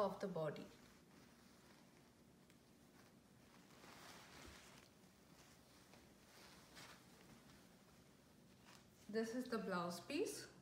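Silk fabric rustles softly as it is lifted and spread out.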